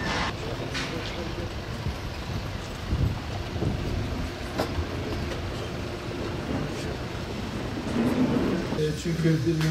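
Several men talk and murmur together outdoors.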